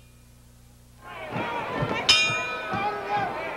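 A crowd shouts and cheers.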